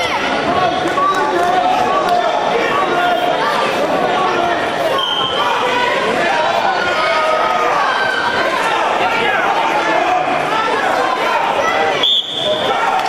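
A crowd of spectators shouts and cheers in an echoing gym.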